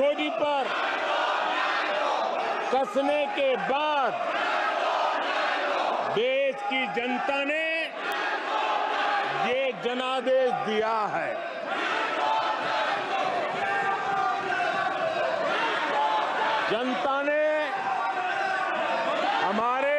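An elderly man speaks forcefully through a microphone.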